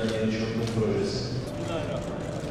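A middle-aged man speaks firmly into a microphone in a large echoing hall.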